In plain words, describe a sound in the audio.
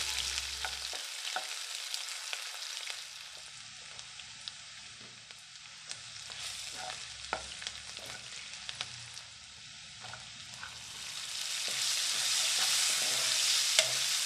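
A spatula scrapes and clicks against a pan.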